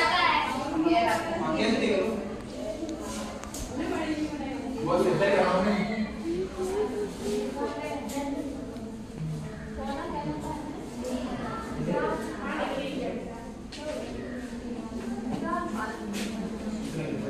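A young man speaks to a class.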